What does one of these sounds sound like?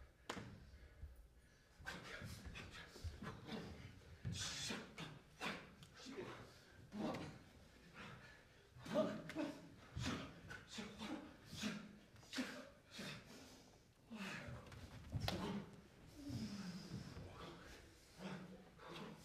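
Bare feet thud and slide on a wooden stage floor.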